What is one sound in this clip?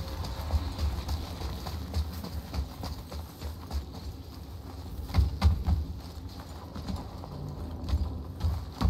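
Heavy footsteps thud and crunch at a steady walking pace.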